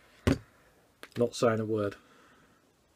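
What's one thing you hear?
A man speaks briefly and calmly close by.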